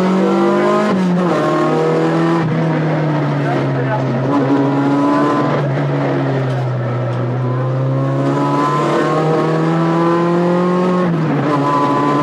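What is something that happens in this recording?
A rally car's engine note drops sharply as the gears change.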